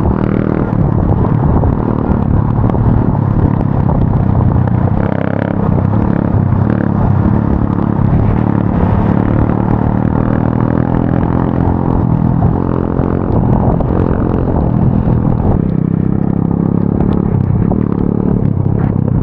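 Tyres rumble over a dirt track.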